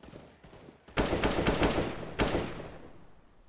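A rifle fires a short burst of shots.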